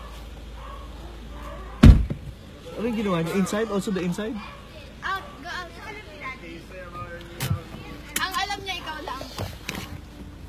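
A young woman laughs and talks close by.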